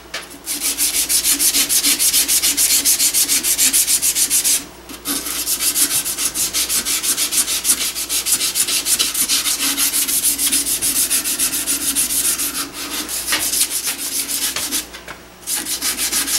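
A metal file rasps rapidly back and forth across a metal tube.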